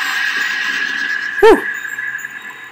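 A laser gun fires a short zap.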